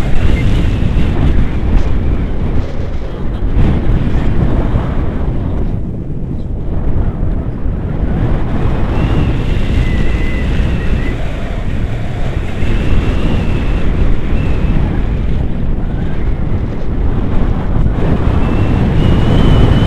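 Strong wind roars and buffets against a microphone.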